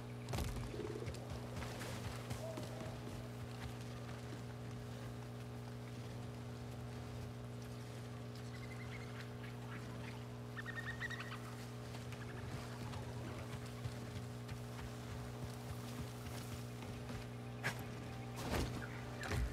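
Footsteps run over grass and wooden planks.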